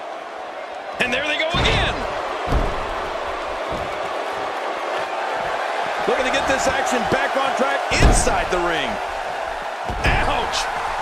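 Bodies thud onto a wrestling ring's mat.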